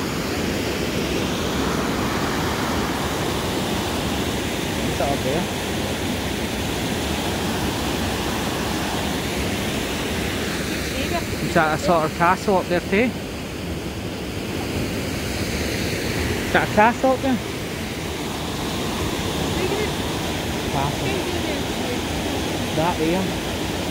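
A river rushes loudly over a weir.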